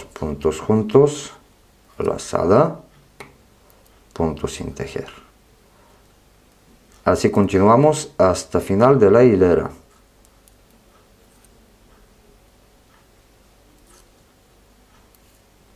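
Knitting needles click softly against each other.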